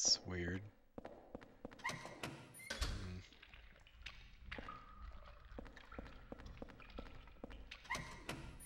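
Footsteps walk on a wet stone floor.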